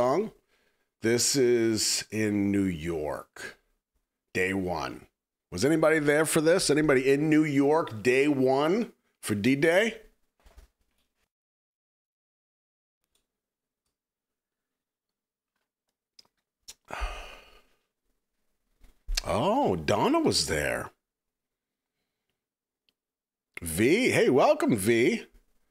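A man talks with animation into a close microphone, pausing now and then.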